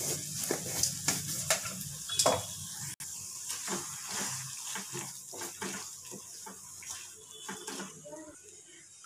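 A spatula scrapes and stirs food in a metal pan.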